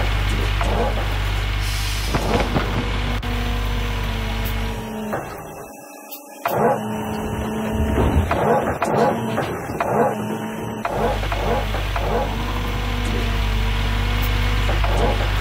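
An excavator engine drones steadily.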